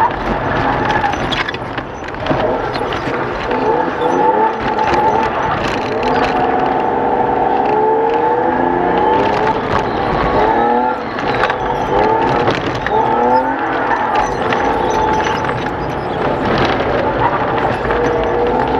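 A car engine revs up and down as the car speeds up and slows.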